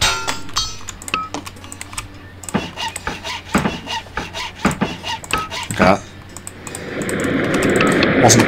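Short game interface clicks sound repeatedly.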